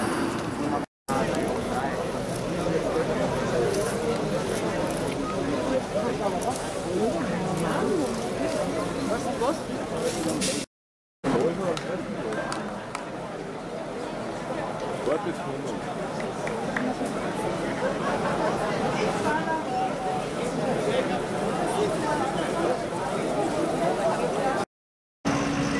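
A crowd of young men chatter and talk among themselves outdoors.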